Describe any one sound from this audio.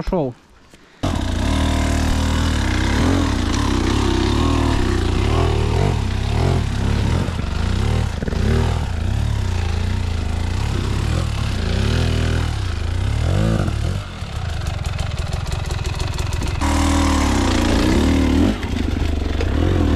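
A dirt bike engine revs and roars close by.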